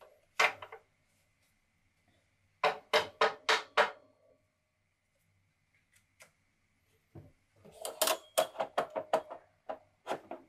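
Pieces of stiff card knock and tap against a wooden worktop.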